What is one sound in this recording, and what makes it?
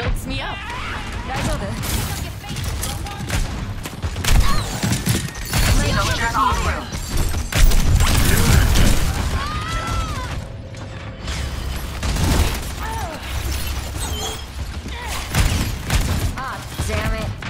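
Gunshots and weapon blasts crack in rapid bursts.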